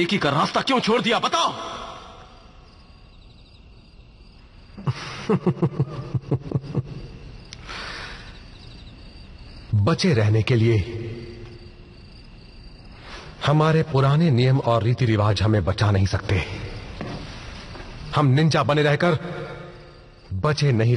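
A young man speaks in a low, serious voice.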